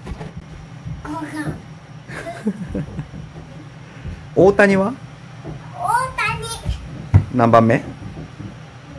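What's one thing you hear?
A small child speaks and shouts excitedly close by.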